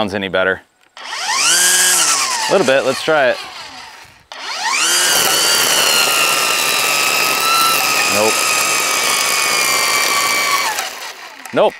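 A string trimmer motor revs up, winds down, then whines steadily.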